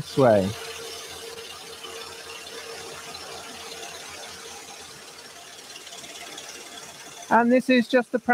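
A scroll saw runs with a steady buzz.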